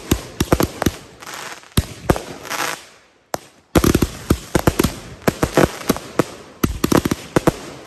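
Rockets whoosh and hiss as they launch.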